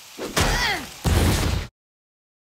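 A loud cartoon explosion bursts with a heavy boom.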